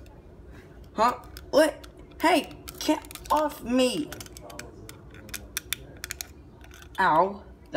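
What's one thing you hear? A squeaky rubber toy squeaks when squeezed, again and again.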